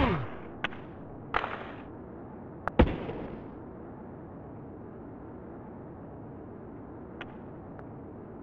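Hockey sticks click and thud against a puck.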